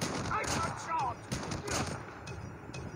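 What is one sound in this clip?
Rifle shots fire in a video game.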